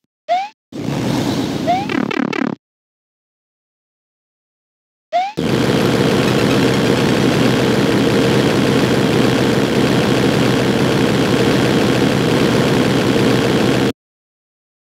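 Fire blasts out in a loud, steady roaring rush.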